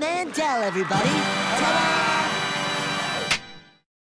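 A short jingle plays.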